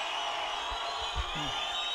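A group of men cheer loudly.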